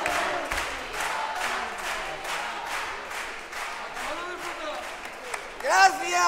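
An audience claps along in a steady rhythm.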